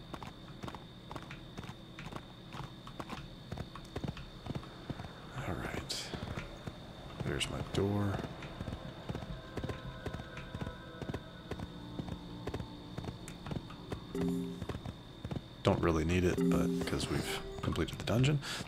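Hooves clop steadily on hard ground.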